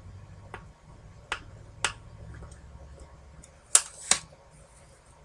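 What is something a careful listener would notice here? A plastic case clicks open and snaps shut.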